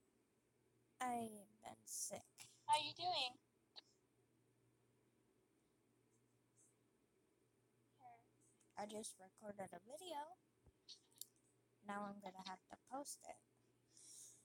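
A young girl talks in short bursts, heard through a phone call.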